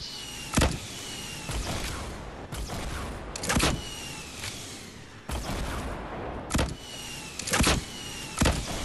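Gunshots fire in sharp single bursts, a few seconds apart.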